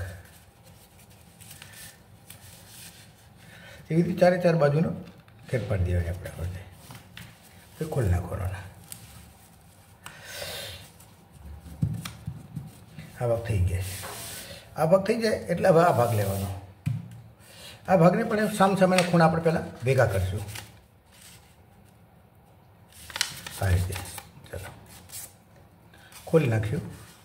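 Paper crinkles and rustles as it is folded by hand.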